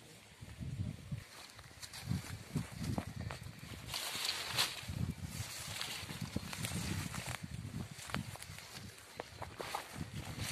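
Footsteps crunch through dry brush and leaves.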